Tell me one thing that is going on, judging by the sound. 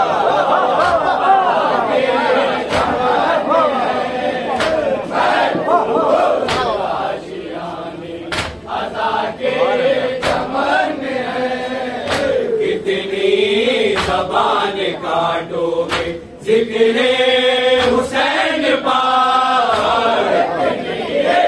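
Men beat their chests in a steady rhythm.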